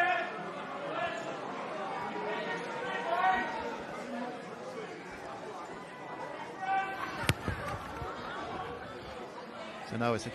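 A sparse crowd murmurs in a large open ground.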